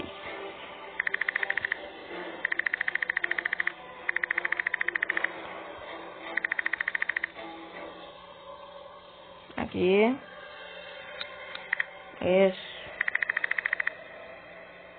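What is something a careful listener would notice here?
Rapid electronic blips tick in short bursts.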